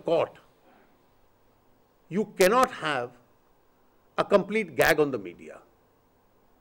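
A middle-aged man speaks calmly into microphones, with pauses between phrases.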